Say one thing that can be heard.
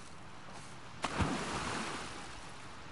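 Wood and debris thud and clatter.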